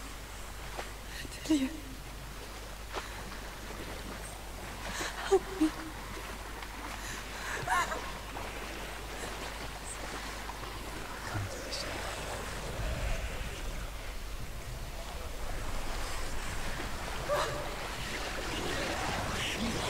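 Water sloshes softly.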